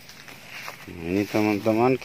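Grass rustles as a man pulls at plants.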